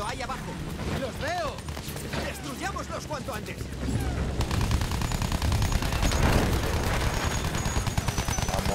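Anti-aircraft shells burst nearby with dull booms.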